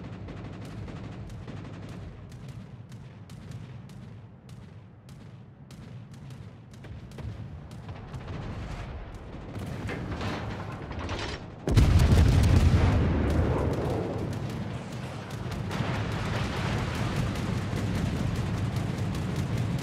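Naval guns fire in rapid, booming shots.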